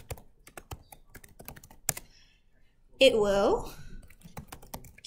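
Keys clatter as someone types on a keyboard.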